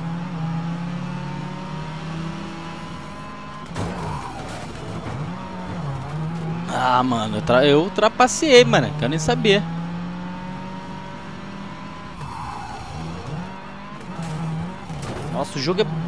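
A rally car engine drones and revs as it races along.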